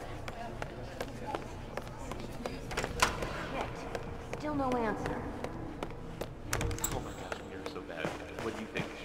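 Footsteps tap on a hard floor at a steady walking pace.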